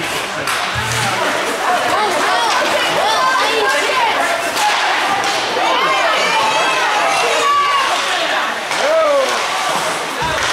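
Hockey sticks clack against the puck and ice.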